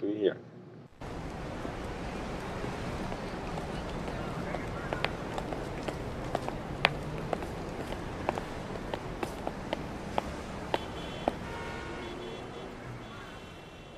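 Street noise hums steadily outdoors.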